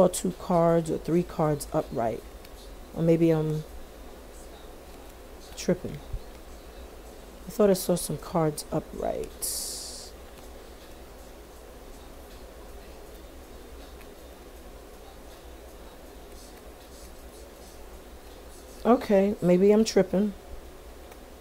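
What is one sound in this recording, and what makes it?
A woman speaks calmly close by, in short bursts.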